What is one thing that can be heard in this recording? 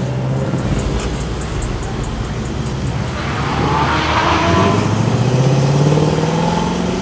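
A sports car engine rumbles and roars as it pulls away.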